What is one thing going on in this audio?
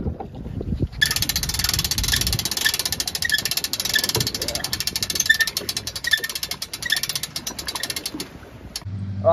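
A winch ratchet clicks rapidly as a handle is cranked.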